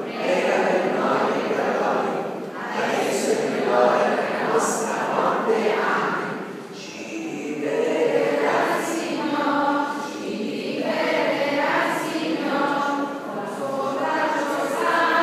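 A crowd of people sings together in a large echoing hall.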